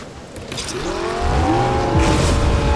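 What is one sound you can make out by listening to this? A car engine revs up and roars.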